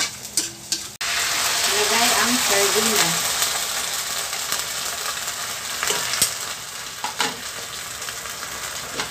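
Food sizzles in hot oil in a wok.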